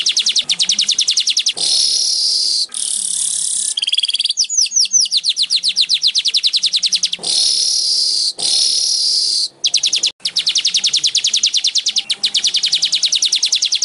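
A small bird sings close by in fast, high trills with harsh buzzing bursts.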